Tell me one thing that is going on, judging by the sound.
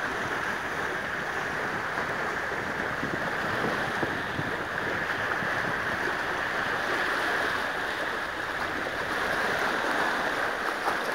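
Small waves lap and splash against rocks on the shore.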